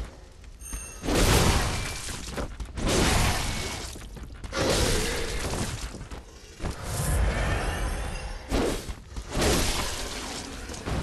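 Heavy blows and slashes clash in a fight.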